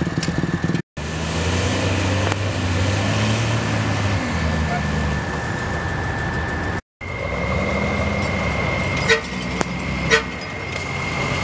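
A second truck engine revs and labours.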